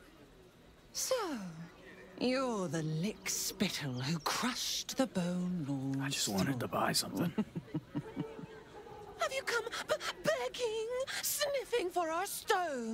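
A young woman speaks with animation and a teasing tone, close by.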